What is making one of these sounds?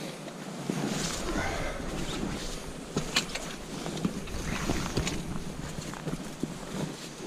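Hands rustle through leaves and twigs close by.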